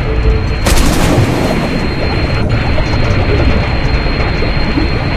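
Water rumbles and churns in a low, steady underwater drone.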